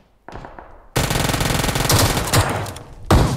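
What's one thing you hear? Loud gunshots blast in quick succession close by.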